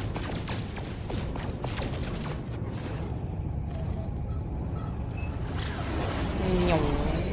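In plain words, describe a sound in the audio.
A spacecraft engine rumbles steadily.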